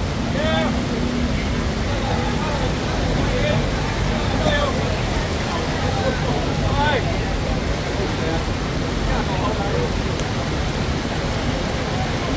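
A crowd of people chatters and calls out nearby.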